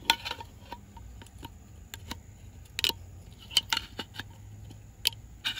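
A metal pry bar scrapes and clicks against a metal hub.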